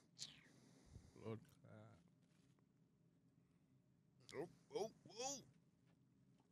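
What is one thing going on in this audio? A second man talks with animation into a close microphone.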